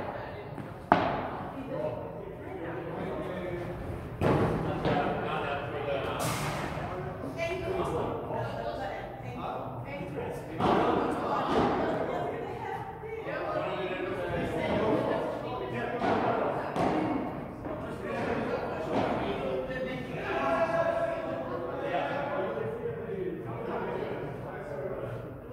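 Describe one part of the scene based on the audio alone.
Men talk casually nearby in an echoing hall.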